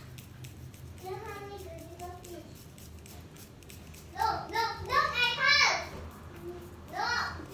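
A razor scrapes across a lathered scalp.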